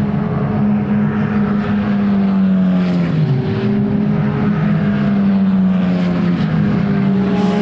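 A racing car engine drones loudly at a steady high pitch as the car speeds along the track.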